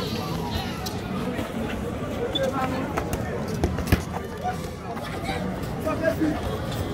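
Sneakers scuff and patter on pavement.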